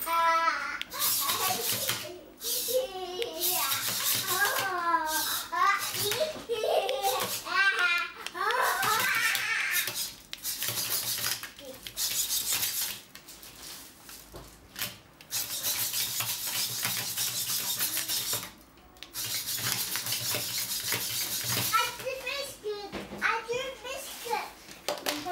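Small robot servo motors whir and buzz in short bursts.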